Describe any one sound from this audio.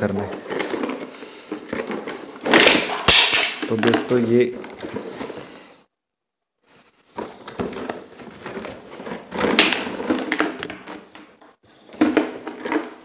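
Paper and cardboard rustle and crinkle.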